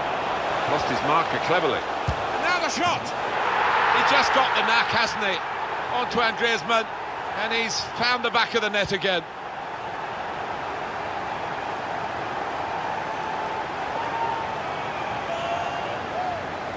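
A crowd roars.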